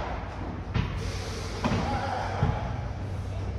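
Paddle rackets strike a ball with sharp pops in an echoing hall.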